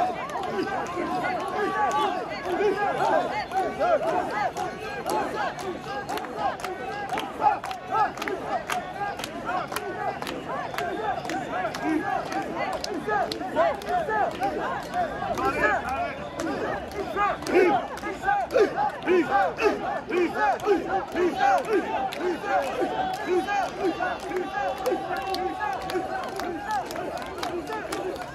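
A large crowd of men and women chant loudly in rhythm close by.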